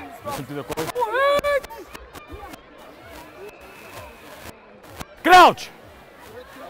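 Children shout loudly close by.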